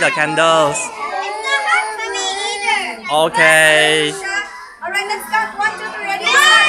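Young children talk and call out excitedly nearby.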